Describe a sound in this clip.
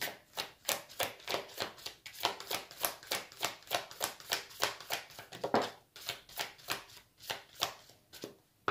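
Playing cards shuffle and flutter together close by.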